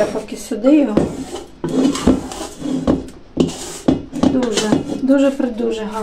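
A spatula scrapes dough from a metal bowl.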